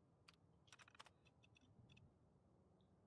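Computer terminal keys click rapidly as text prints out.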